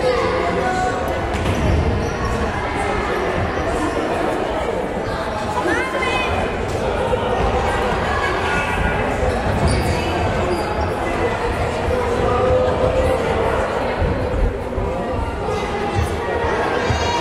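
Children chatter and shout in a large echoing hall.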